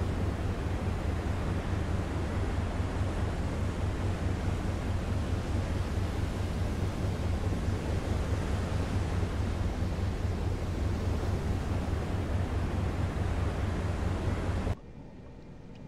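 Waves wash and churn around a submarine's hull at sea.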